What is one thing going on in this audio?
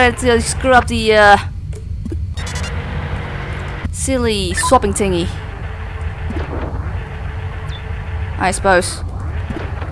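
Electronic chirps and beeping tones sound in short bursts.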